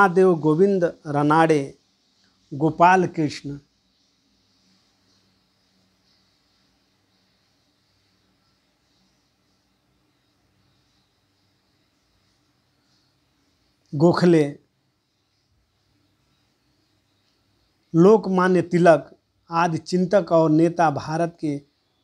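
A middle-aged man speaks calmly and closely into a microphone, pausing at length between phrases.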